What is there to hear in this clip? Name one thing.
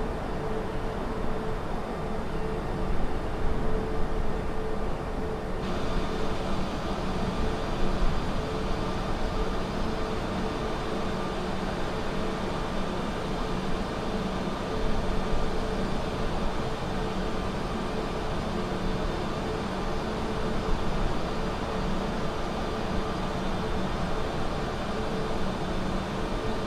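A jet engine roars steadily in flight.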